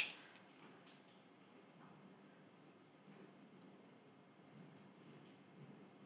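A marker squeaks softly as it writes on paper.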